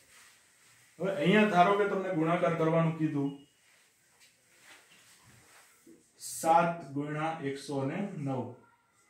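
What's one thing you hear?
A man speaks calmly nearby, explaining.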